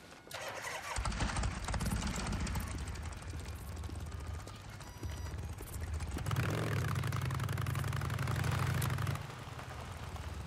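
A motorcycle engine revs as the bike rides off.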